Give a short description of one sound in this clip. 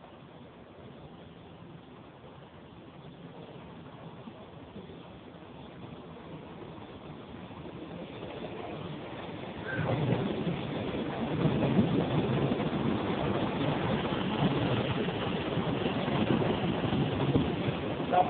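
A train approaches and rumbles past close by, growing steadily louder.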